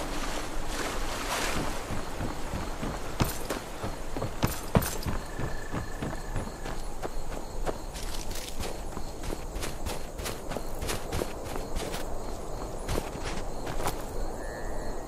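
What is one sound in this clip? Footsteps crunch over snow and stone.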